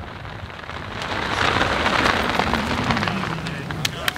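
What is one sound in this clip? A parachute canopy rustles as a skydiver lands.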